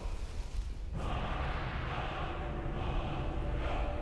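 A low, eerie chant swells loudly.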